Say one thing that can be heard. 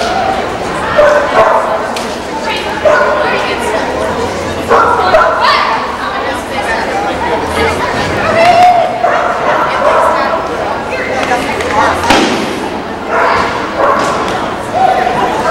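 A woman calls out short commands with animation across a large echoing hall.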